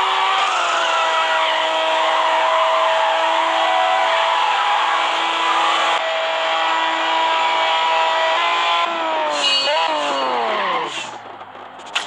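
A racing car engine roars at high revs and then winds down.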